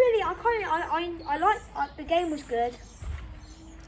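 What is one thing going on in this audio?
A young boy speaks with animation, close by.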